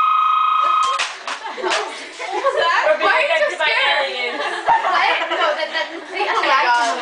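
A group of young women bursts into loud laughter.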